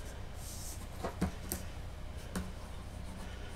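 A hand pats and taps a hard model with a few soft knocks.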